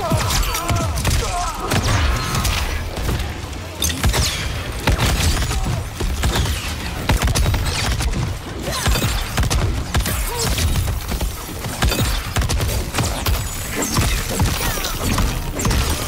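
Fiery explosions roar and crackle.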